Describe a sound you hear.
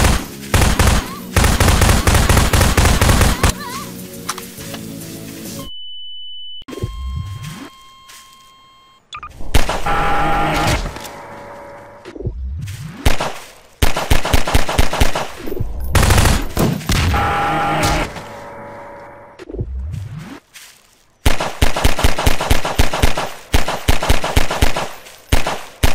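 A gun fires in rapid bursts of shots.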